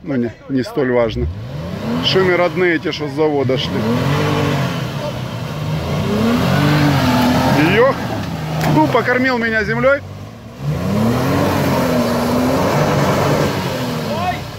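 An engine revs hard, rising and falling.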